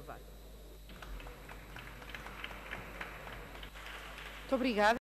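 A man claps his hands in scattered applause.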